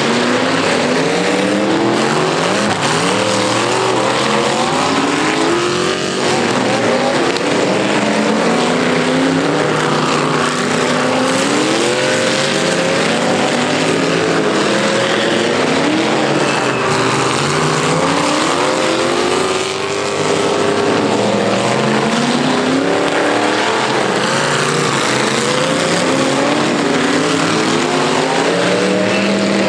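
Many car engines roar and rev loudly outdoors.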